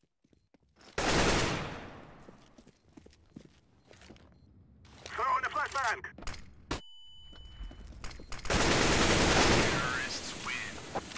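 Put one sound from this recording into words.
A rifle fires in rapid bursts close by.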